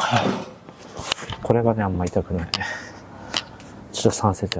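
A man speaks close by, somewhat breathless.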